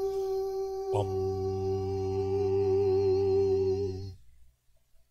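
An organ plays a sustained low chord.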